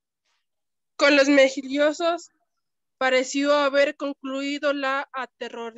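A woman reads aloud close to a microphone.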